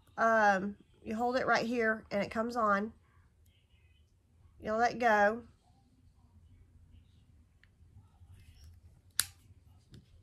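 An electric lighter clicks.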